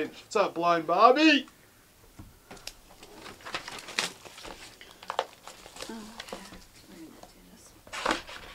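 Hands rustle and tap a cardboard box.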